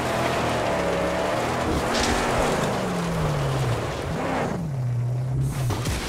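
A car engine roars and revs, rising and falling in pitch.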